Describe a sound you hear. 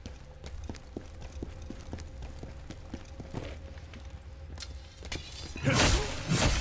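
Footsteps crunch on rough ground.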